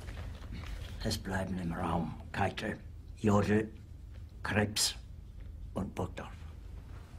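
An elderly man speaks quietly and tensely, close by.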